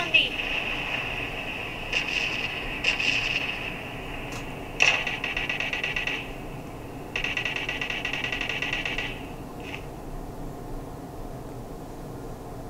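Fingers tap on a phone's touchscreen.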